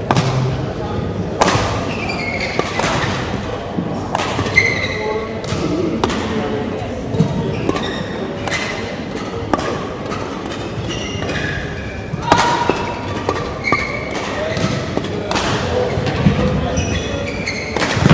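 Shuttlecocks are struck with sharp pops in a large echoing hall.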